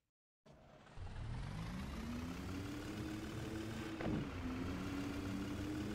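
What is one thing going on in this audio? A city bus engine speeds up as the bus pulls away.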